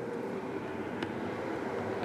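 A hard plastic case clicks softly.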